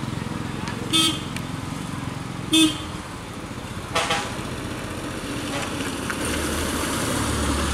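A small car engine hums as the car comes up the winding road toward the listener.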